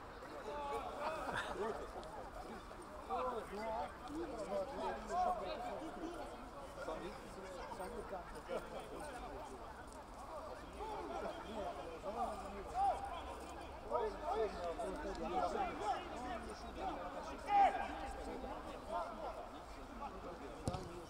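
Many voices chatter and call out across an open outdoor pitch.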